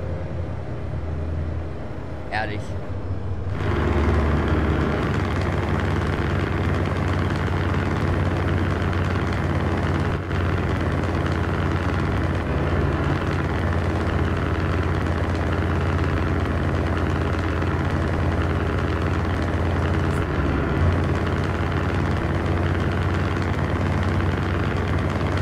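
A truck engine hums steadily with a low drone while driving.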